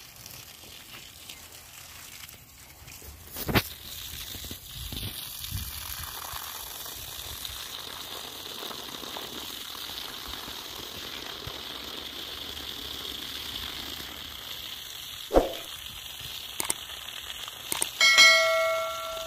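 Water gushes steadily from a hose and splashes onto grass.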